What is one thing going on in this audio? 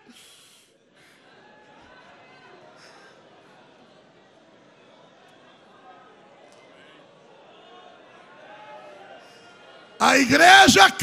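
A crowd laughs and murmurs softly in the hall.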